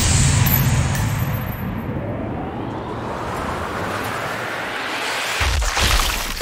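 A bullet whooshes through the air in slow motion.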